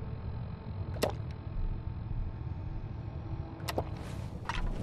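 Short electronic clicks sound as a menu is scrolled.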